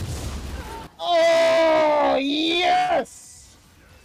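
A young man shouts excitedly into a microphone, his voice rising and falling.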